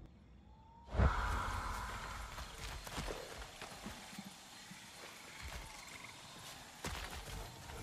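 Footsteps crunch on soft forest ground.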